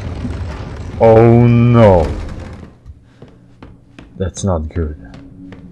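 A young man speaks with animation through a microphone.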